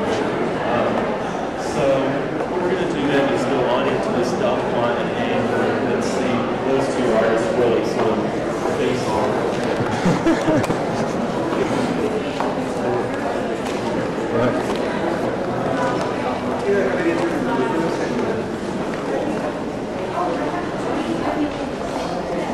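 A crowd of people chatter throughout a large, echoing hall.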